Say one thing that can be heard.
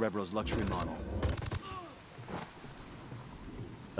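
A suppressed rifle fires a shot.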